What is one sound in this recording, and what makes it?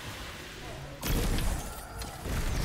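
An icy blast bursts with a loud crackling boom.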